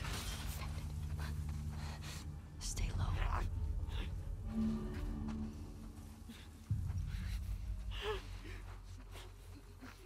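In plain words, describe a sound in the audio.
Tall grass rustles as someone crawls through it.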